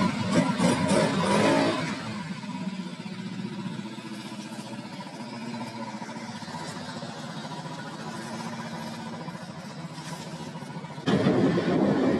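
A scooter engine idles with a low hum.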